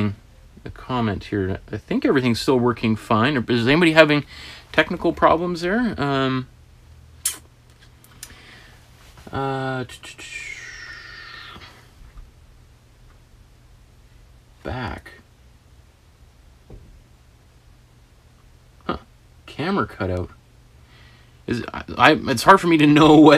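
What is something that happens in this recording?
A man talks calmly into a nearby microphone, with pauses.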